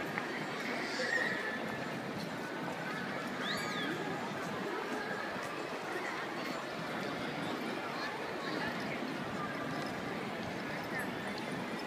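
A busy crowd murmurs outdoors.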